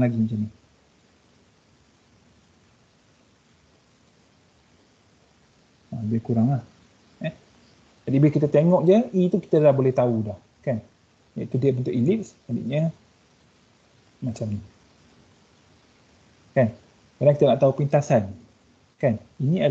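A young man speaks calmly through a microphone on an online call, in short phrases with pauses.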